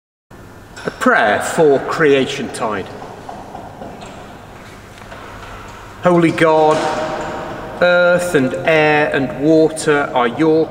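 A man speaks calmly and clearly in a large echoing hall.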